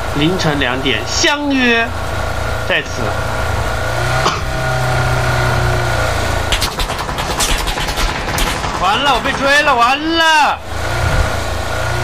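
A car engine hums steadily as the car drives over rough ground.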